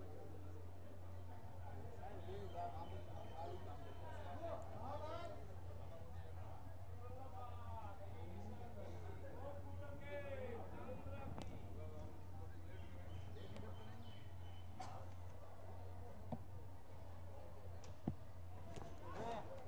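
A crowd of men talk and murmur outdoors.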